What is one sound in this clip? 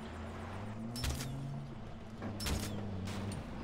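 Gunshots ring out sharply.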